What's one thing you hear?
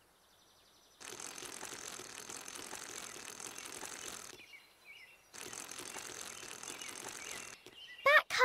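Bicycle wheels roll and rustle over grass.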